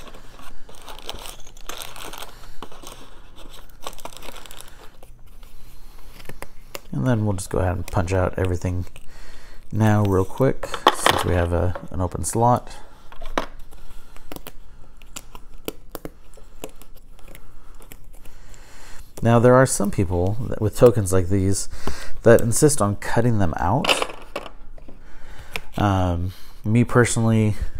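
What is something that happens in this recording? Cardboard sheets rustle and flex in a man's hands.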